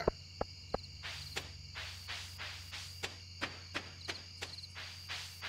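Light footsteps tap quickly and evenly.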